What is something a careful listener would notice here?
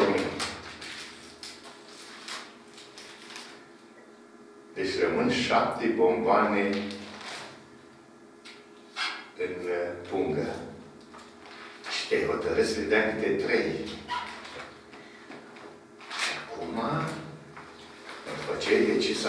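An elderly man speaks calmly and clearly nearby.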